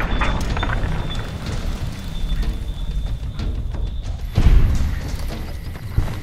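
A large creature growls and snarls close by.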